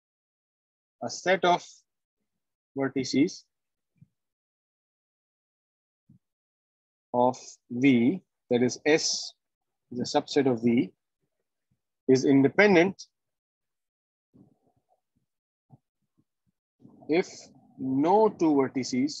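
A man speaks calmly in short phrases over an online call, with pauses.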